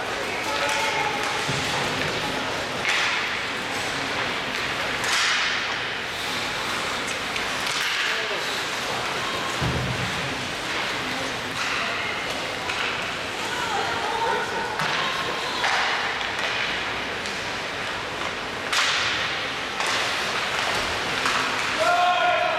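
Sounds echo around a large, hard-walled rink.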